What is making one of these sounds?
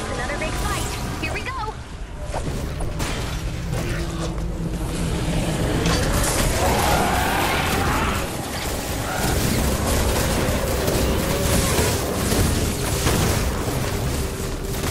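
Weapons swing and strike repeatedly in a noisy game fight.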